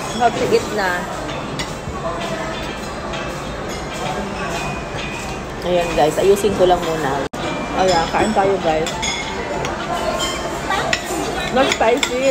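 A young woman talks calmly close by.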